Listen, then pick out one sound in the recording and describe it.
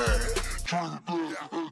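A deep bass beat thumps.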